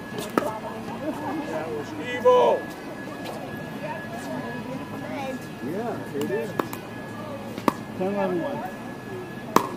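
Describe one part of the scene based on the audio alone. Men call out to each other on an outdoor court.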